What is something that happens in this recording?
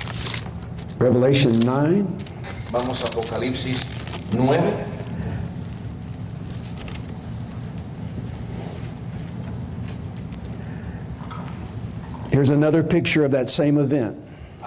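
A man speaks into a microphone through loudspeakers, pausing between phrases.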